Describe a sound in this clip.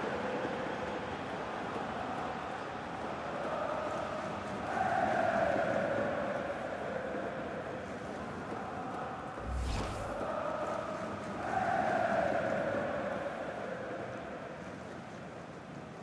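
A large stadium crowd cheers and roars, swelling loudly twice.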